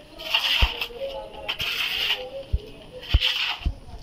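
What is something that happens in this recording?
A shovel scrapes through wet cement.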